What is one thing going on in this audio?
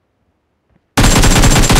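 An assault rifle fires a burst in a video game.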